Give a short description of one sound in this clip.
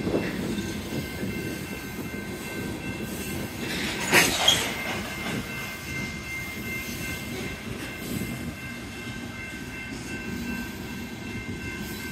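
A freight train rumbles past with wheels clacking over the rails.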